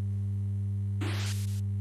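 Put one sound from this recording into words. A spaceship's rocket engines roar with a short burst of thrust.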